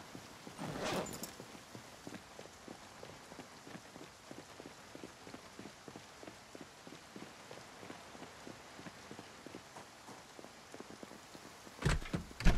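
Footsteps patter steadily on pavement.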